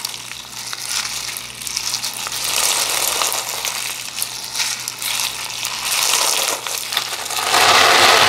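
Hands squish and crackle a crunchy slime close up.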